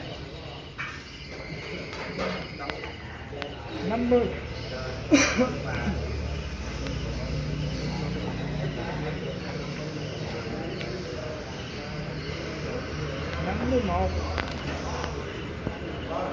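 Men talk quietly in the background.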